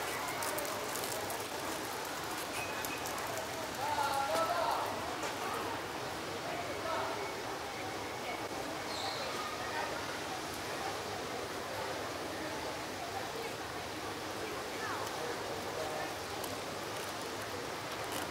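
A steady outdoor murmur of a town street carries distant voices.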